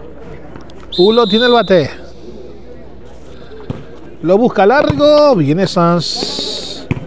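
Men shout loudly outdoors during a ball game.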